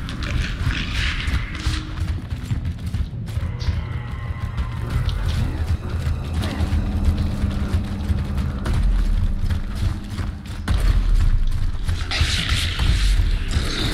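Heavy armoured footsteps thud on concrete.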